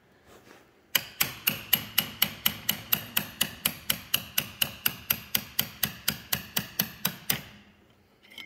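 A file scrapes back and forth across rusty metal.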